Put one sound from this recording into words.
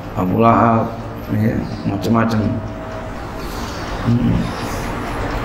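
A middle-aged man speaks calmly into a microphone, with a slight echo.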